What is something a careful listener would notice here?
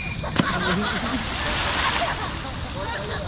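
A person splashes into water.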